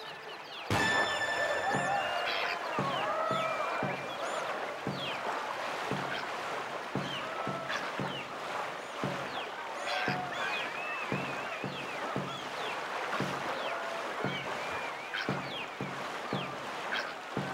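Paddles splash rhythmically through water.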